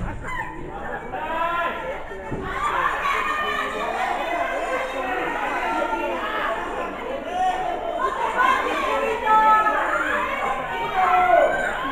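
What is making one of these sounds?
A crowd of men and women shout and cheer in an echoing hall.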